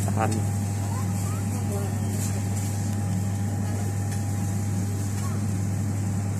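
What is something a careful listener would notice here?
A wood fire crackles in a brick oven.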